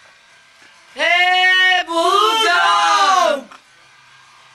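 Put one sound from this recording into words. A young man sings close to a microphone.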